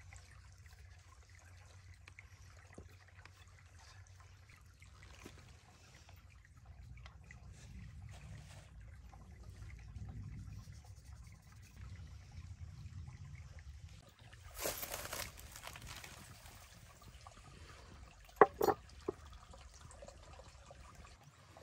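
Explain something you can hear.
Water trickles over stones nearby.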